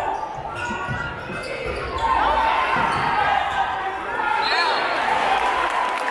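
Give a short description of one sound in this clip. A crowd cheers and chatters in a large echoing gym.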